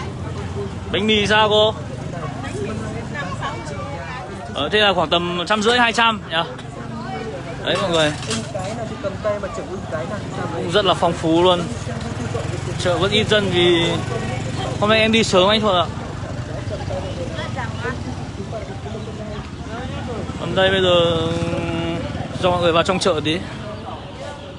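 Women talk nearby with animation.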